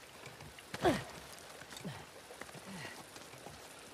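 Hands grip and scrape on stone while climbing.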